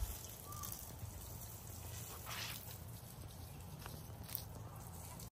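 Water from a garden hose splashes onto soil and plants.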